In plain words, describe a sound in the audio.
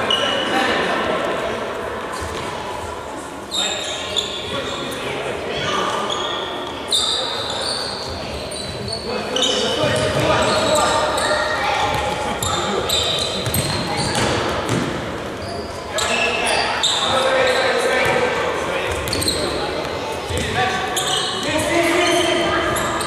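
Men shout to each other across a large echoing hall.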